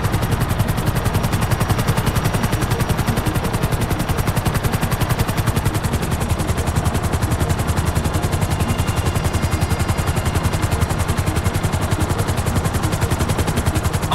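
A helicopter engine whines steadily.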